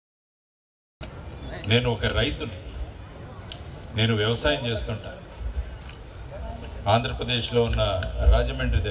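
A man speaks into a microphone over loudspeakers in a large echoing hall, addressing an audience.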